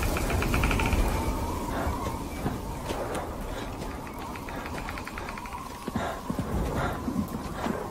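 A young man cries out nearby.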